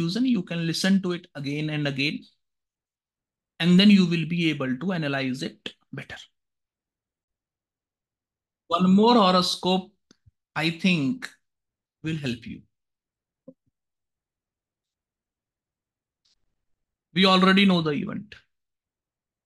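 A young man speaks calmly over an online call, with pauses.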